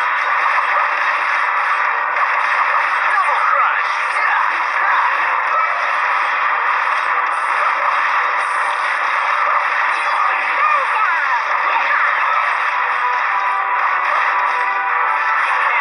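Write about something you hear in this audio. Game battle sounds of swords clashing and spells bursting play throughout.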